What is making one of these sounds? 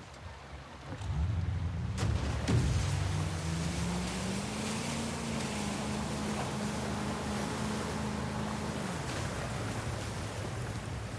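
A motorboat engine roars as the boat speeds across the water.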